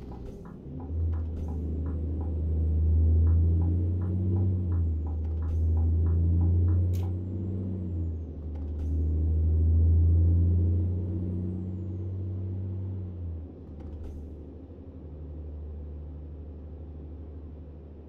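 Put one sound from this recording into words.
A truck engine drones steadily and rises and falls as the truck drives.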